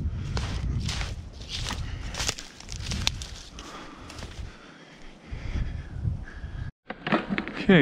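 Footsteps crunch through snow and dry grass.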